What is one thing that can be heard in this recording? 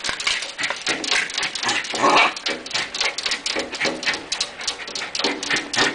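A small dog scratches and paws rapidly at window glass.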